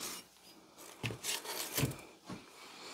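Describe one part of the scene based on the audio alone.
A heavy metal axe head is set down with a dull knock on wood.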